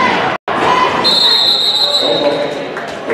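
A referee's whistle blows a long shrill blast.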